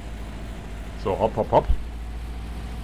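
A car engine revs in short bursts.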